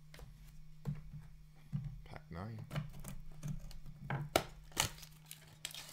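Fingers tap and scrape against a small cardboard box.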